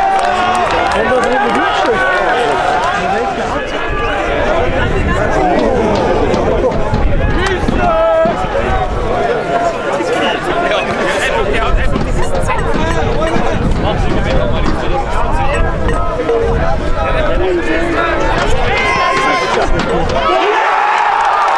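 Spectators shout and cheer at an outdoor football match.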